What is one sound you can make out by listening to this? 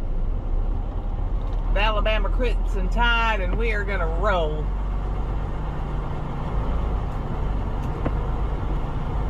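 A truck engine rumbles low and steadily nearby.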